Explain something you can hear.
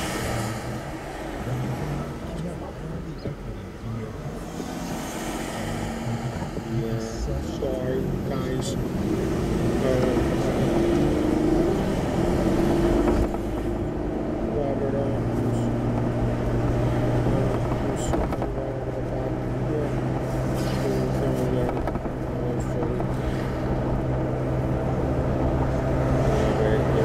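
A car engine hums steadily from inside the car as it pulls away and drives on.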